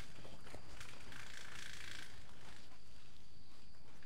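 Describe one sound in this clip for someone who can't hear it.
Soil rustles as hands press it around a plant.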